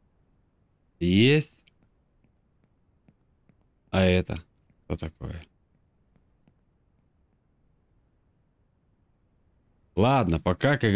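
A man speaks in bursts into a close microphone, with pauses between.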